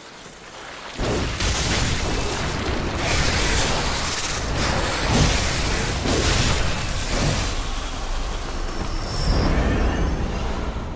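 A heavy blade strikes a monster with wet thuds.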